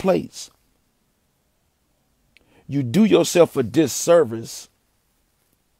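A man speaks close to the microphone with animation.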